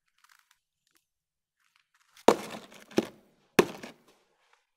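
Frozen chunks clatter onto a hard surface.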